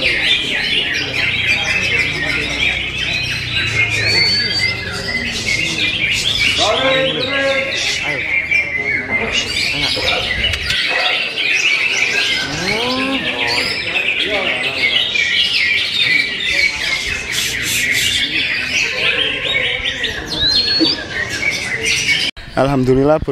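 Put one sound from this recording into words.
A caged bird sings with rapid, busy chirps and trills.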